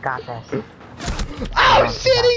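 A pistol shot cracks sharply.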